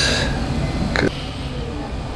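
A neck cracks with a sharp pop.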